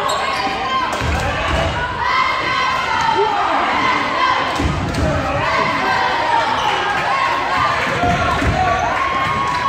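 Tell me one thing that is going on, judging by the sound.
A basketball bounces with dull thumps in an echoing gym.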